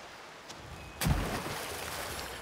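A heavy weapon slams into a creature with a loud crash.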